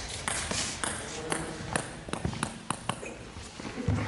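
Ping-pong balls click on tables and paddles in a large echoing hall.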